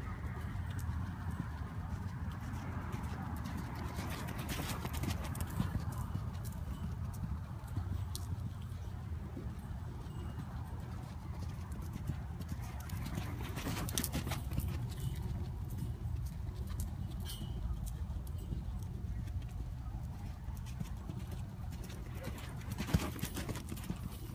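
A horse's hooves thud softly on loose dirt as it lopes around.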